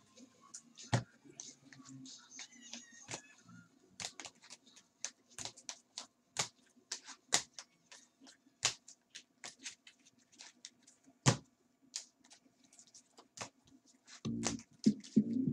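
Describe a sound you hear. Plastic card cases click and clack as they are shuffled by hand.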